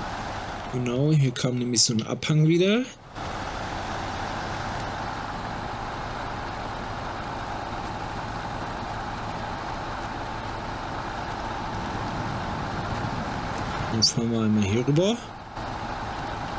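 A heavy truck engine rumbles steadily as the truck drives over rough ground.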